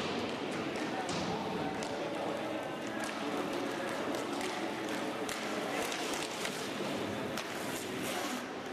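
A hockey stick clacks sharply against a puck.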